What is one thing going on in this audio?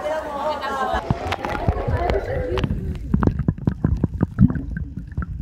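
Water splashes and bubbles, heard muffled from underwater.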